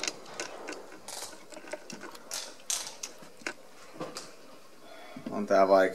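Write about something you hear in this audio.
A rifle's parts click and knock as a man handles it.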